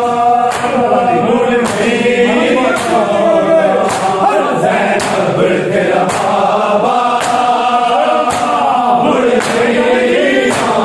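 A crowd of men chants loudly together in an echoing room.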